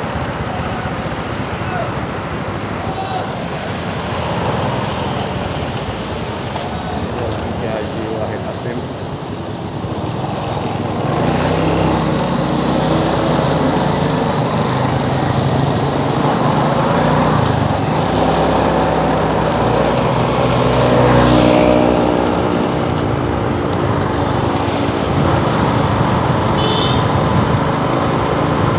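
Traffic rumbles along a street.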